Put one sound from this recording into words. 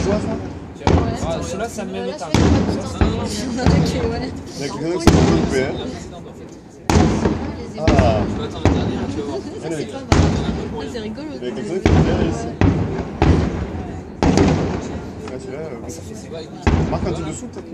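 Fireworks boom in the distance, echoing across the night.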